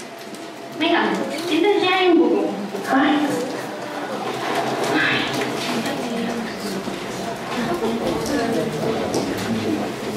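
Women speak with animation, heard from a distance.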